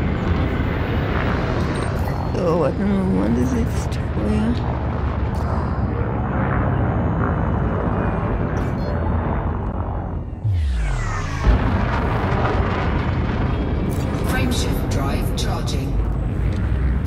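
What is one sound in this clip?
A spaceship engine hums steadily with a low rumble.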